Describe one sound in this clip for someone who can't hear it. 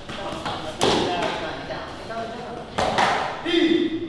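Bodies thud hard onto a padded mat.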